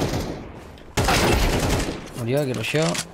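Gunshots crack loudly in rapid bursts.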